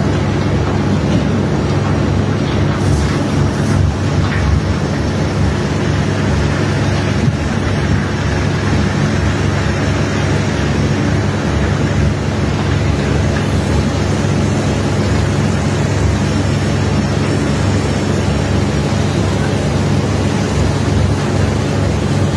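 A ship's engine rumbles steadily.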